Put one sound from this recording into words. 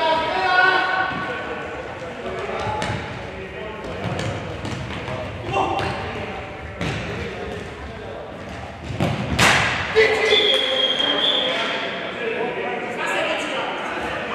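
Sports shoes squeak sharply on the court.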